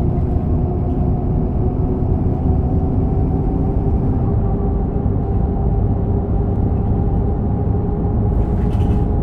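Bus tyres roll along a road.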